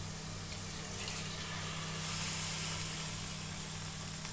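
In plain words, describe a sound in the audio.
Water pours into a simmering pot.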